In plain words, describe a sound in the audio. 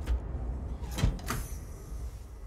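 A heavy metal latch clunks.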